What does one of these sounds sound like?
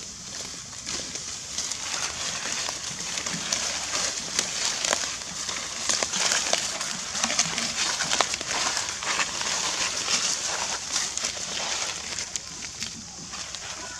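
Dry leaves rustle and crunch under a monkey's feet.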